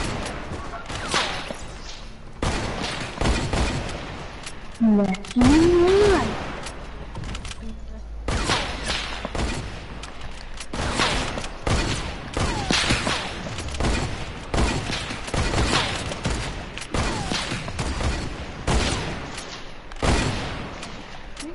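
Gunshots fire in quick, repeated bursts.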